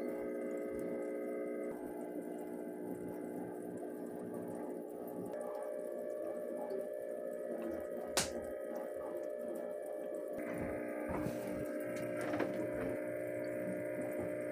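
Air bubbles gurgle and bubble steadily in water.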